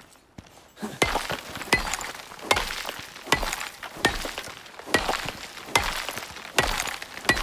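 A stone pick strikes rock with sharp, repeated knocks.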